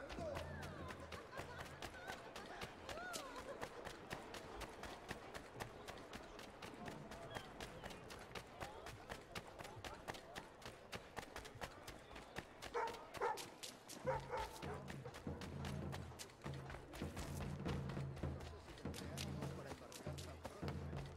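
Footsteps patter quickly on a cobbled street.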